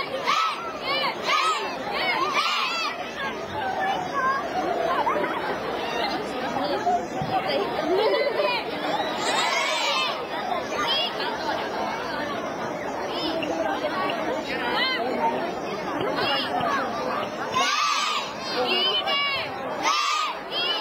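A group of children shout together in sharp bursts outdoors.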